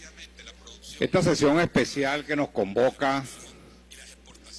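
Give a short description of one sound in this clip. A middle-aged man speaks with animation into a handheld microphone.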